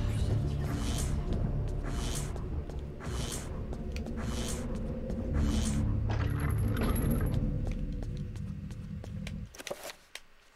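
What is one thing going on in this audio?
Video game music plays loudly, then stops.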